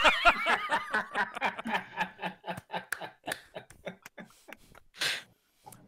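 A young woman laughs loudly over an online call.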